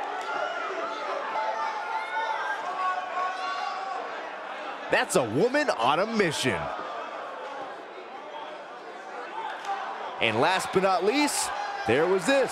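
A large crowd cheers and chants in an echoing arena.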